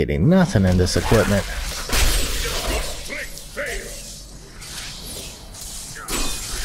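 Magic blasts and crackles as creatures are struck in a fight.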